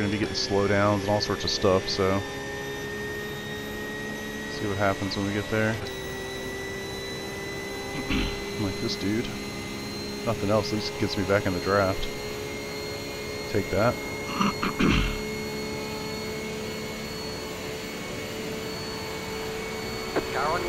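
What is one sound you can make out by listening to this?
A racing car engine drones steadily, rising in pitch as it speeds up.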